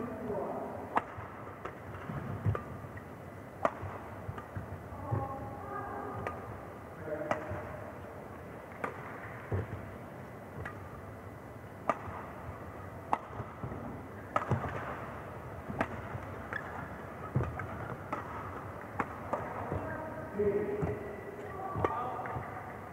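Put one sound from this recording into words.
Rackets strike a shuttlecock in a fast back-and-forth rally.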